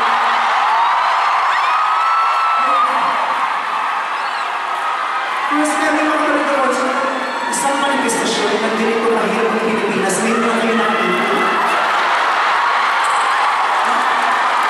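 A performer sings into a microphone through loud speakers in a large echoing hall.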